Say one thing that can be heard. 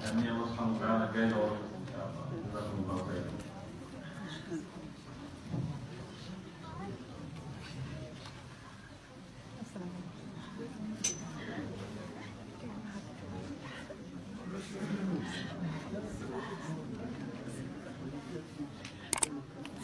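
Several women talk and exclaim emotionally close by.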